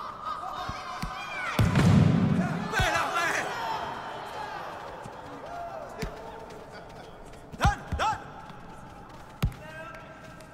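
A football is kicked with short, dull thuds.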